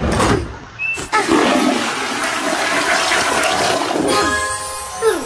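A toilet flushes with a rushing of water.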